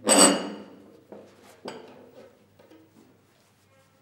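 A glass bowl clinks against a wooden table as it is set down.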